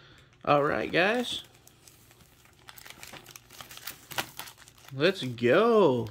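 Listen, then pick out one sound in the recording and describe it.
Trading cards rub and slide against each other as they are shuffled by hand.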